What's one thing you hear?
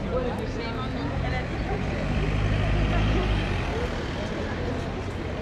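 A car drives slowly past.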